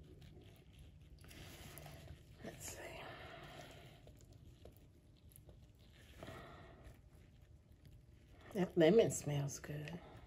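Thick batter plops softly into a mould.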